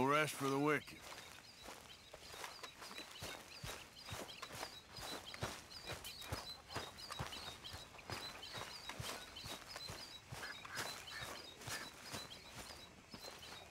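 Footsteps crunch through grass and leaves.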